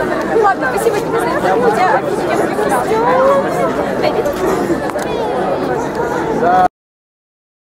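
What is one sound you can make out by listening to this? A crowd of young people chatters and laughs close by outdoors.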